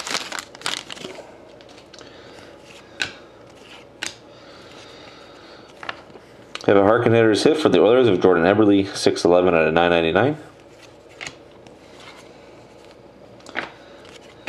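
Trading cards tap and slide against each other.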